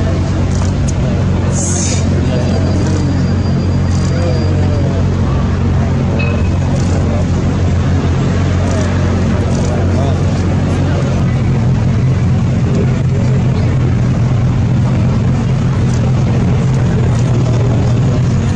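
A motorcycle engine rumbles as it rides past slowly.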